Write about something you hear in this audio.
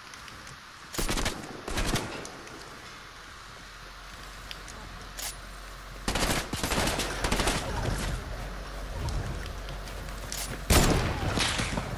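Sharp gunshots crack from a video game.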